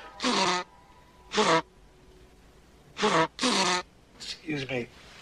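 A middle-aged man sobs and wails loudly in short, heaving bursts close by.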